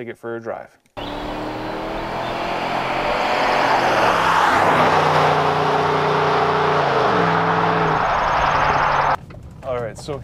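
A car engine roars and shifts gears as the car speeds past.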